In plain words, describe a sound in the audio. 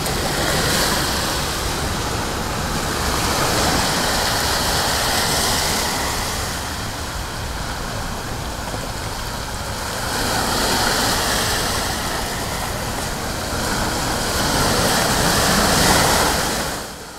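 Waves wash onto a beach in a steady, swelling rush, outdoors.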